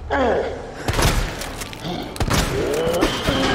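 A shotgun fires loudly, with a short ringing echo.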